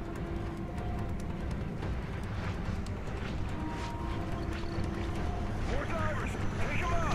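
A deep underwater rumble drones steadily.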